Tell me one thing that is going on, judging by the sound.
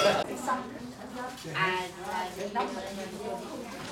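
A middle-aged woman talks with animation close by.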